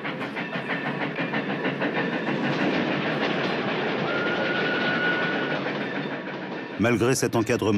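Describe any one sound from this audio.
A steam locomotive hisses loudly as it pulls in.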